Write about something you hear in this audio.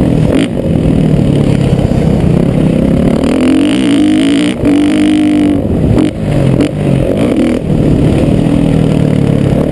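A dirt bike engine revs hard up close, rising and falling in pitch.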